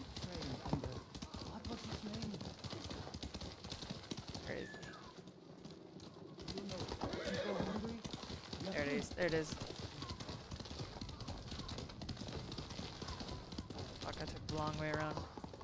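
Horse hooves thud on the ground at a gallop.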